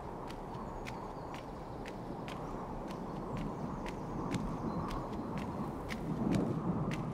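Light footsteps tap at a steady, quick pace.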